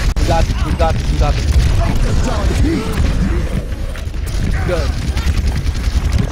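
A weapon fires rapid shots in a game.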